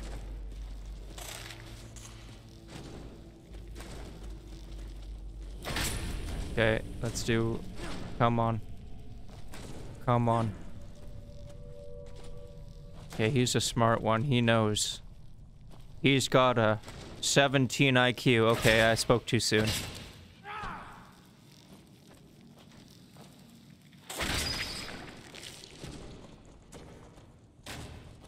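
A sword swings through the air.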